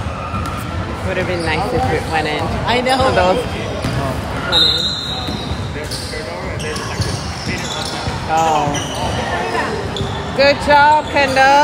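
Children shout and call out across a large echoing gym.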